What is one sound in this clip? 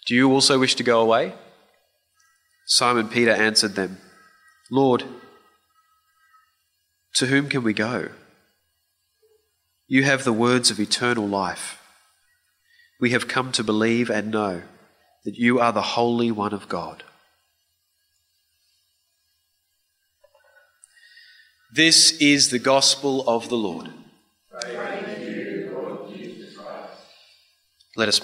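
A man speaks calmly and slowly through a microphone in an echoing room.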